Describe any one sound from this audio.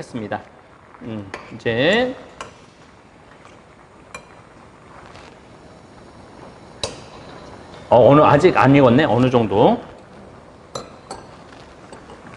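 A spoon clinks against a clay pot.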